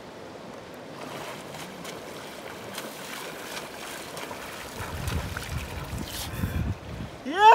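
Water splashes as a man swims.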